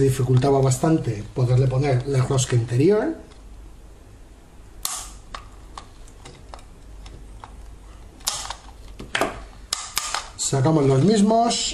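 A plastic switch clicks as it is pressed.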